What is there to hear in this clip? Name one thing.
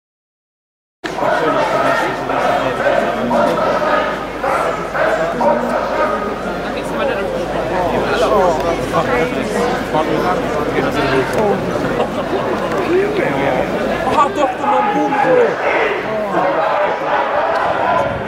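A crowd of men and women talks and shouts outdoors, close by.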